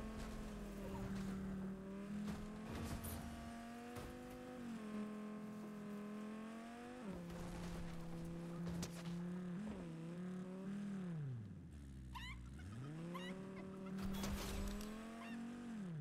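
A car engine hums steadily and rises and falls in pitch as it speeds up and slows down.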